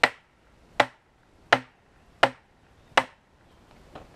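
A hammer strikes a metal fence post.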